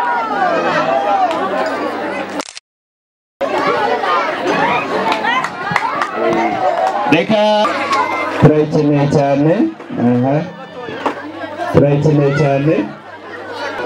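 A crowd of men and women chatters and laughs outdoors.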